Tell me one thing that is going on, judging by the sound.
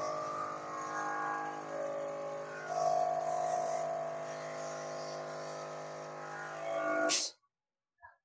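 A spray gun hisses in short bursts of air.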